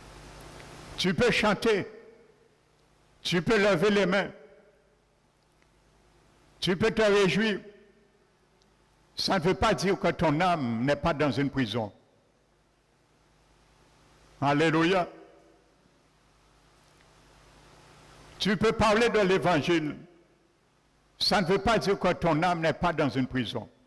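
A man speaks slowly in short phrases through a microphone, with pauses, in an echoing hall.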